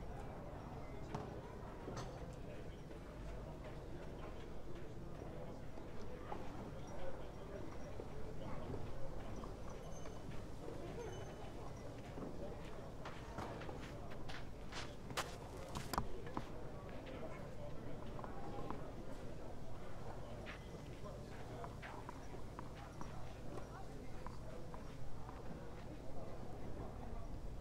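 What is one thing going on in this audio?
A crowd of spectators murmurs softly outdoors.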